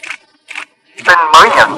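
A voice calls out loudly through a loudspeaker.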